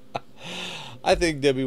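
A middle-aged man laughs close to a microphone.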